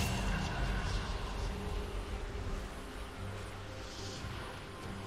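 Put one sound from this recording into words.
Video game battle effects clash and whoosh.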